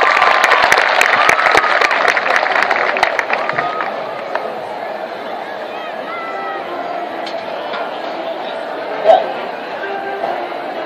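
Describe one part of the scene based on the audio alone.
A marching band plays brass and drums in a large open stadium.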